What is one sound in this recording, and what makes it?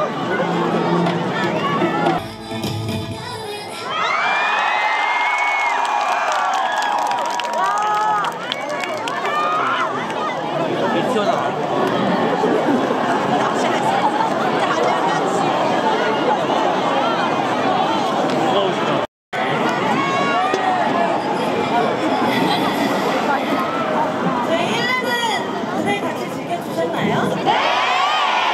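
A large crowd cheers and screams loudly.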